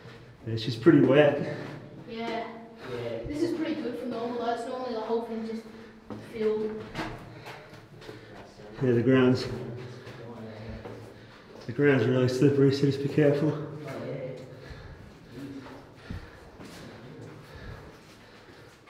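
Footsteps crunch on a dirt floor.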